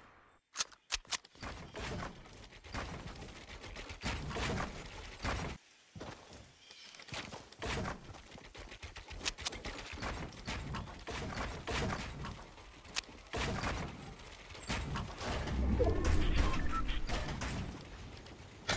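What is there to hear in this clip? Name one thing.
Footsteps patter quickly over ground and wooden floors.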